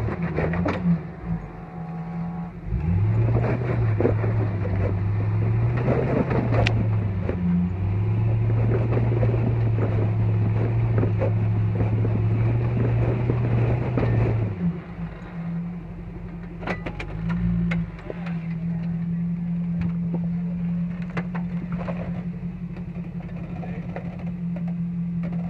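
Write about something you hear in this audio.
Off-road tyres crunch and grind over rocks.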